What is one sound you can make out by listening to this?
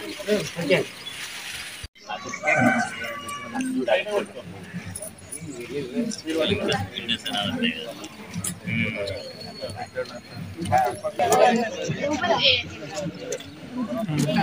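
A crowd of men and children talk and murmur outdoors nearby.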